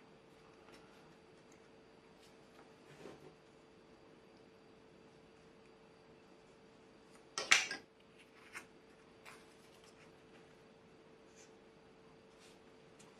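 Small wooden parts click and tap together as they are handled.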